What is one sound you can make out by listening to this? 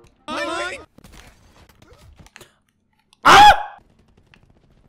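A young man shouts with excitement close to a microphone.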